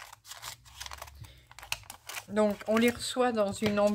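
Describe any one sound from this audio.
Scissors snip through a plastic wrapper.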